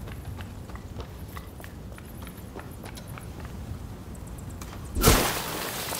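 Footsteps crunch on stony ground.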